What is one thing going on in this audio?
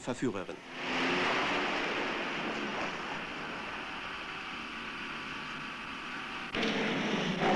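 Tyres skid and scrape over loose sandy ground.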